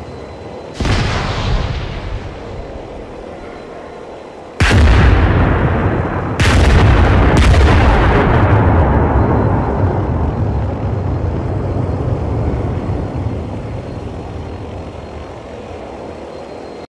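Loud explosions boom nearby and rumble away.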